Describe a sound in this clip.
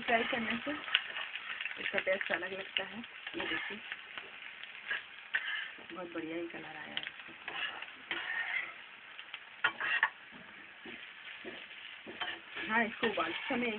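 A metal spatula scrapes and clinks against a frying pan.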